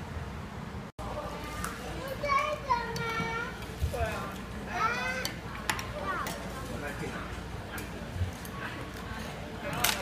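Young children chatter excitedly close by.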